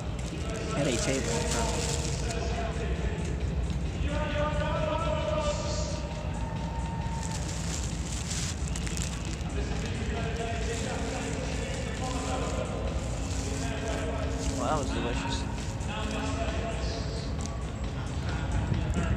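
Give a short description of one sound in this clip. A young man talks casually and close up.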